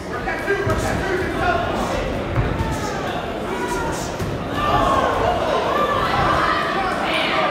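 Gloved punches thud against a boxer.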